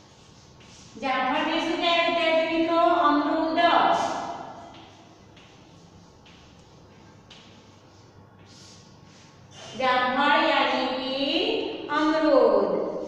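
A woman speaks clearly and steadily, close by.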